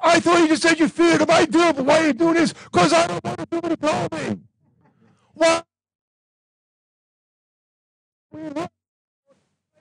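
An elderly man preaches loudly and with animation through a microphone.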